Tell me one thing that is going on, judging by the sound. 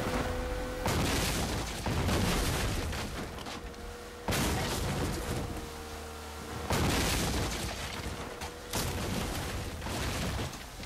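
A boat's outboard motor hums steadily.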